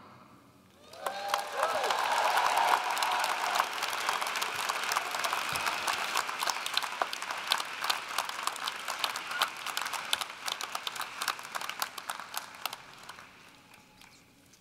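A large crowd cheers and applauds in a large echoing hall.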